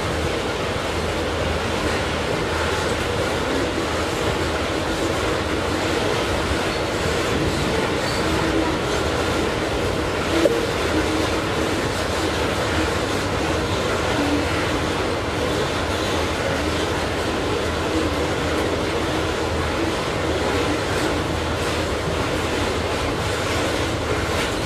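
Steel wheels clatter and squeal on the track.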